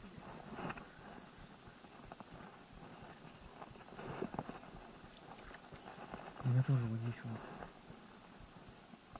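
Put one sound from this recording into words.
Fingers fiddle with a small fishing lure, making faint clicks.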